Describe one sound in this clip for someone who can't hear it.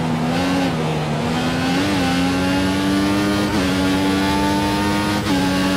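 A racing car engine screams at high revs, rising in pitch and dropping briefly with each gear change.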